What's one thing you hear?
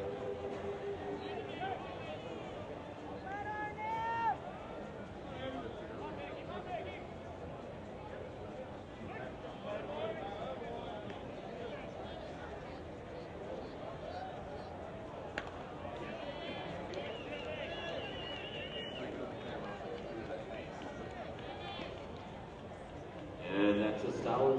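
A crowd murmurs and calls out in a stadium.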